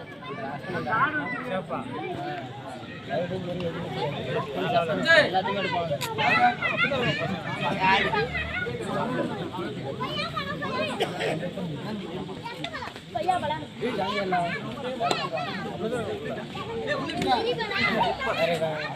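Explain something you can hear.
A large crowd of young men shouts and cheers outdoors.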